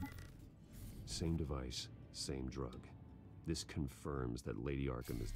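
A man's deep voice speaks calmly from a game.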